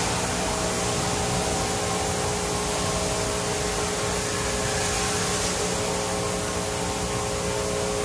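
Spinning brushes swish against a car.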